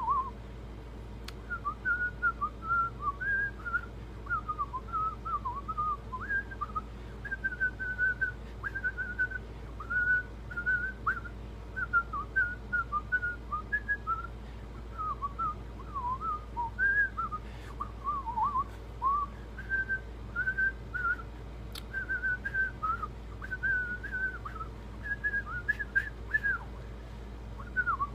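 A middle-aged man whistles a tune close to the microphone.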